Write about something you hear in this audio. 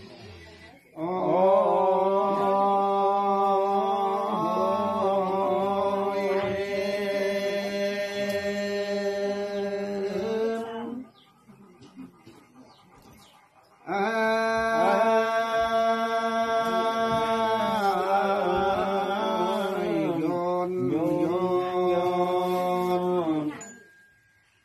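A man chants close by in long, steady, drawn-out notes, with a pause in between.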